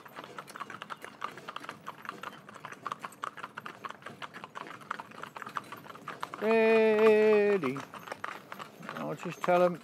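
Hooves clop steadily on a paved road.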